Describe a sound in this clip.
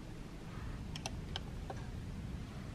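Buttons on a wall switch panel click as they are pressed.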